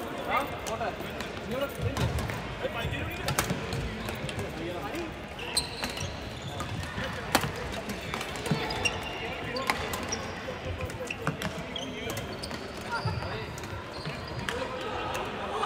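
Shuttlecocks are hit with rackets in sharp pops.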